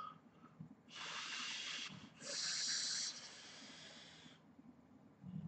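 A man inhales sharply through a vaping device.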